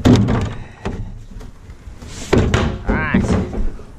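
A plastic bin lid slaps shut.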